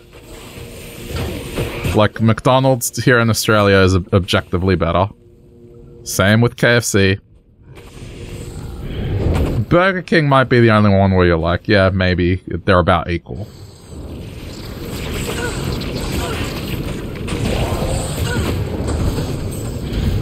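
Blows strike monsters in a fight.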